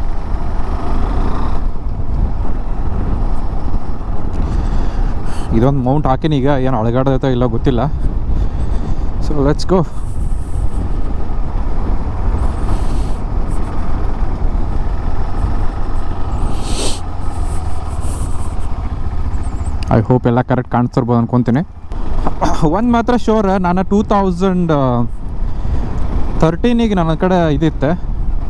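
Wind rumbles past while riding.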